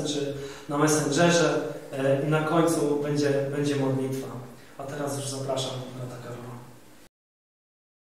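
A man speaks with feeling into a microphone.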